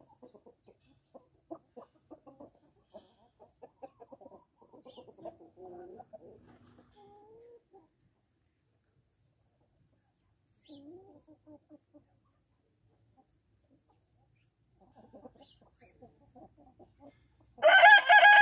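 Hens cluck and murmur softly nearby.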